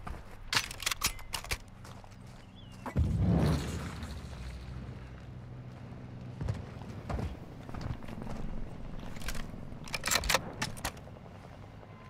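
Rifle shots crack in quick bursts.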